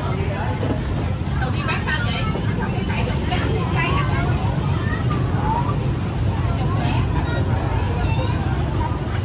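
A crowd of men, women and children chatters all around outdoors.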